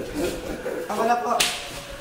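An electric spark crackles and hisses.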